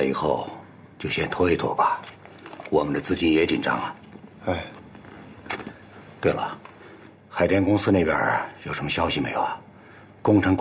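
A young man speaks in reply nearby.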